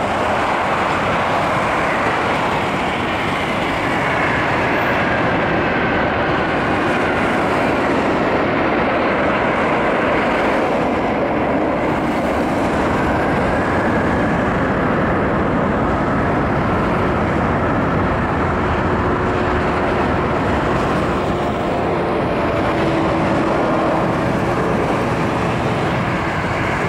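Jet engines roar loudly and steadily as a large airliner takes off.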